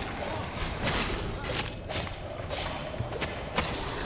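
A magic blast whooshes and booms.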